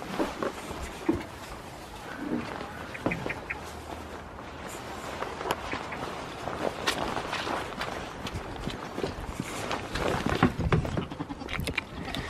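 Footsteps crunch through straw and wet grass.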